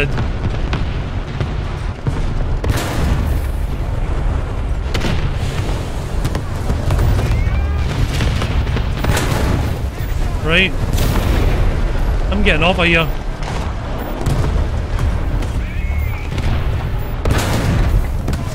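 A tank cannon fires with loud booming blasts.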